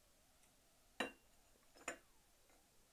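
A cup clinks down onto a saucer.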